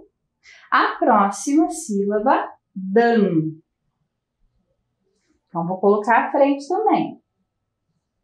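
A woman speaks clearly and calmly into a close microphone.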